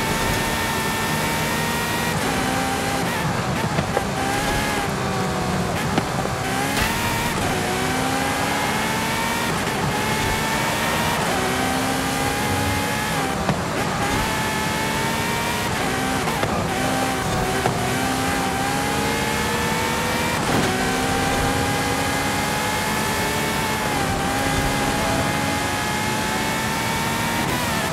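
A sports car engine roars at high revs, rising and dropping with each gear change.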